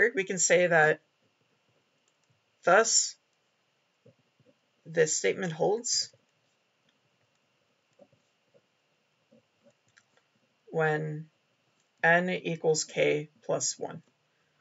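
A felt-tip pen squeaks and scratches on paper.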